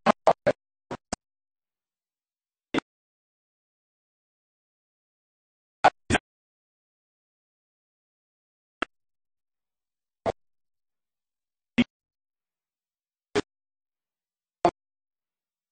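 A man speaks into a microphone in short, broken bursts.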